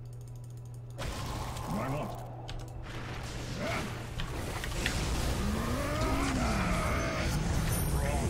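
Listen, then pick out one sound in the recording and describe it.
Magic blasts and weapon clashes burst out in a fast fight.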